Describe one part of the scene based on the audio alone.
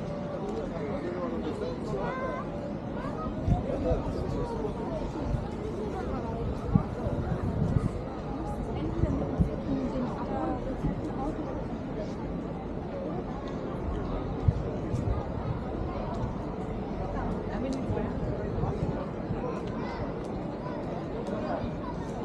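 People talk nearby outdoors.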